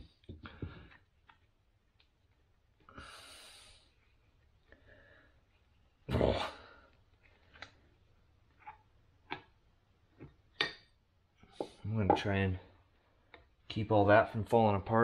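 Metal parts clink and click as they are handled.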